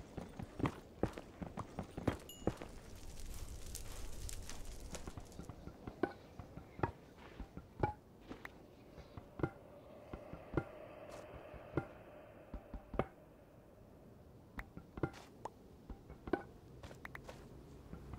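Footsteps tap on hard stone at an uneven pace.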